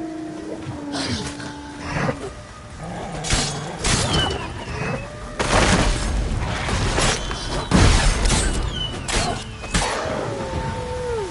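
Swords slash and strike with sharp clangs.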